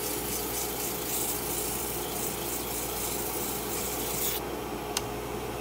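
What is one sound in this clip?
A wood lathe hums steadily as it spins.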